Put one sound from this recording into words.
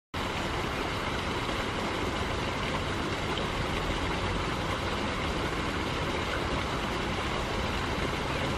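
A shallow stream trickles and babbles steadily over stones.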